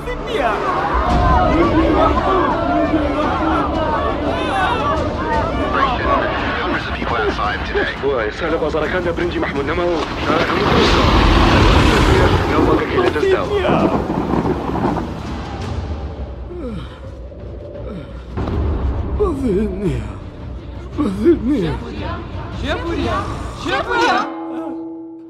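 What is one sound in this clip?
A man sings loudly.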